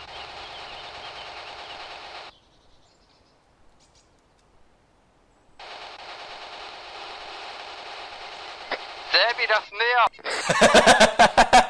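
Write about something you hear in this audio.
Wind rustles through tree leaves.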